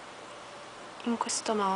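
A young woman speaks calmly and close up.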